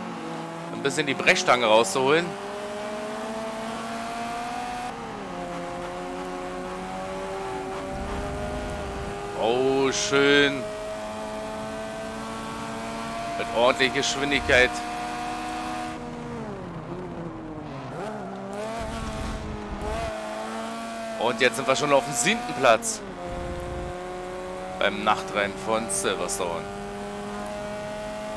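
A racing car engine roars steadily, its pitch climbing through the gears.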